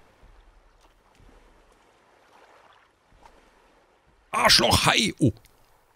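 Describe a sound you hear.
Water laps gently against an inflatable boat.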